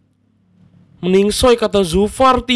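A young man speaks close into a microphone.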